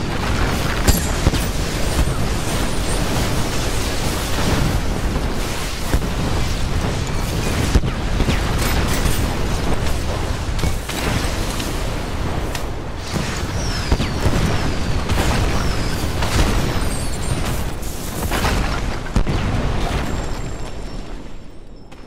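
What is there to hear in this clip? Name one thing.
Magic blasts and explosions boom and crackle in quick succession.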